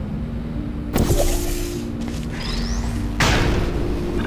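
A portal gun fires with a sharp electronic burst.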